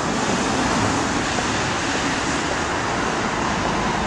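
A truck's engine rumbles past.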